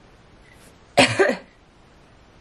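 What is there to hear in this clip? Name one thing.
A woman coughs close by.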